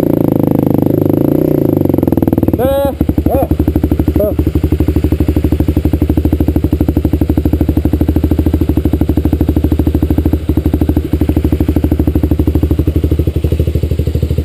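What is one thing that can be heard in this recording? A dirt bike engine idles and chugs loudly close by.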